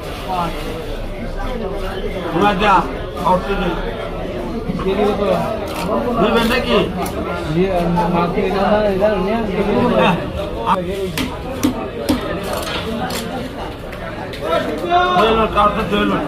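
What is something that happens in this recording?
A heavy blade chops through fish onto a wooden block with dull thuds.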